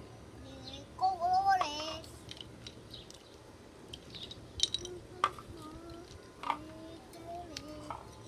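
A young boy babbles softly nearby.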